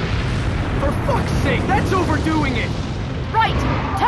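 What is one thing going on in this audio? A man exclaims in annoyance.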